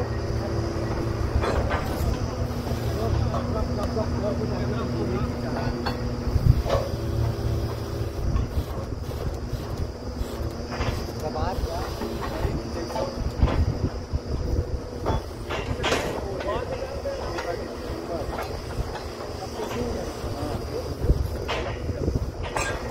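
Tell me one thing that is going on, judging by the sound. A drilling rig's diesel engine runs with a steady low rumble.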